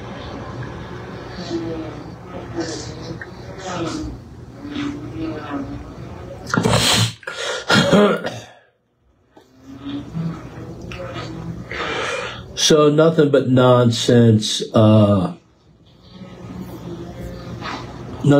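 An elderly man speaks quietly and calmly, close by.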